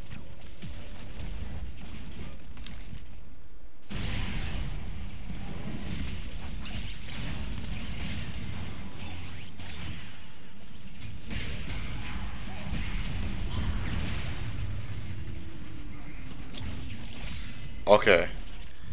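Magical blasts and clashing fight effects crackle and boom in a busy battle.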